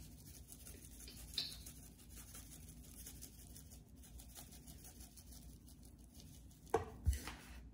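Seasoning rattles softly from a shaker.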